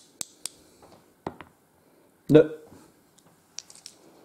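Small dice rattle and click together in a hand.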